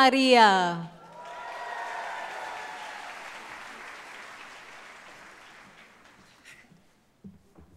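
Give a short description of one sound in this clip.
A large audience applauds in a big echoing hall.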